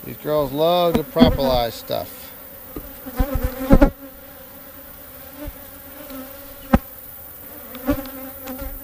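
Bees buzz steadily in a low hum.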